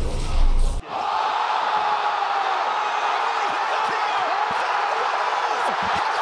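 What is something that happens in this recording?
A man shouts excitedly into a headset microphone.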